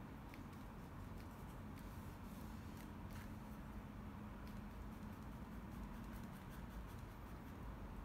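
A paintbrush taps lightly against a canvas.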